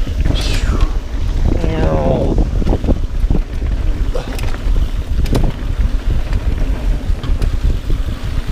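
A bicycle chain and frame clatter over bumps.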